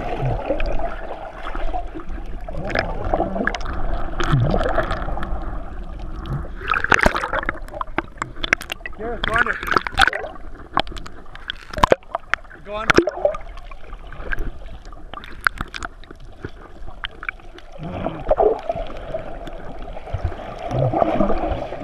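Muffled underwater rushing and bubbling fills the sound.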